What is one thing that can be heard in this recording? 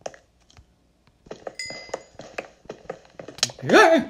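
A pickaxe chips and cracks against stone blocks.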